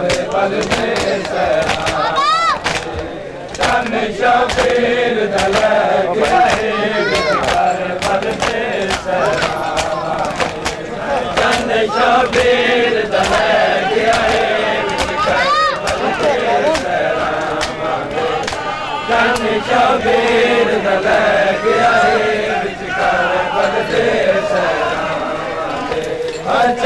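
Men beat their chests with their hands in a rhythm.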